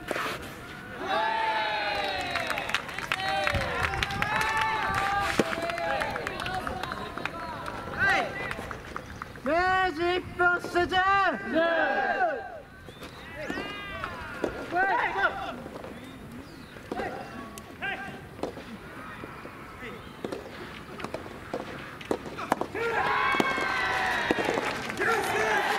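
Young men shout loudly and energetically outdoors.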